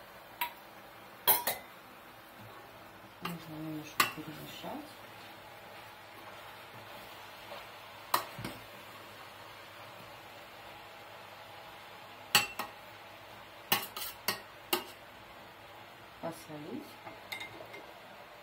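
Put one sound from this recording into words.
Metal utensils clink sharply against a steel pot now and then.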